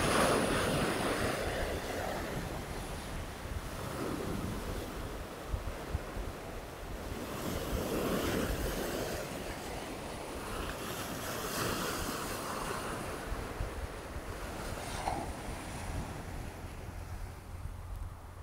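Waves break and wash over rocks close by.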